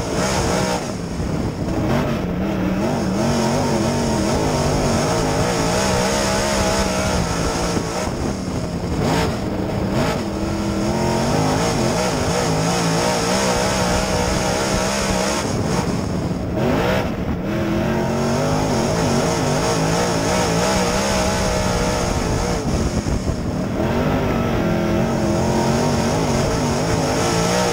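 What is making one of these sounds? A race car engine roars loudly close by, rising and falling in pitch as the driver lets off and gets back on the throttle.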